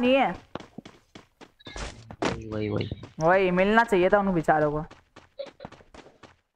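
Quick footsteps run across dirt.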